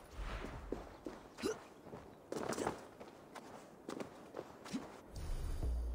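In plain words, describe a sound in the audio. Footsteps crunch on stone and grass.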